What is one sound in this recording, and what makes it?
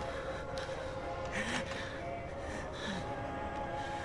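A wooden door creaks as it is pushed open.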